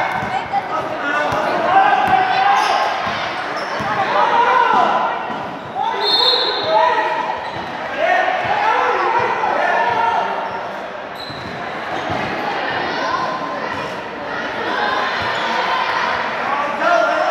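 A basketball bounces on the hard floor.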